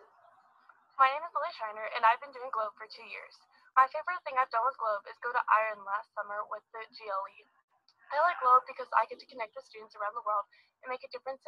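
A teenage girl speaks calmly to the microphone, heard through a computer speaker.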